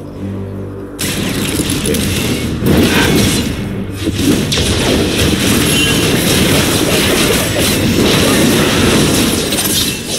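Video game combat effects clash, zap and burst in quick succession.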